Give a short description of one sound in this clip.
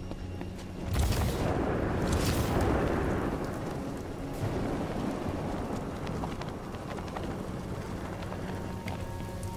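A heavy cape flaps and swishes in the wind.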